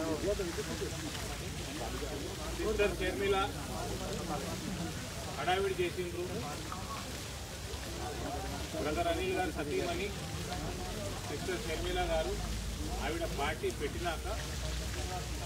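A middle-aged man speaks calmly into microphones outdoors.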